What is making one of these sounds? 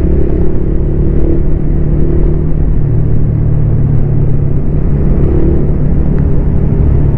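Wind rumbles loudly past the rider.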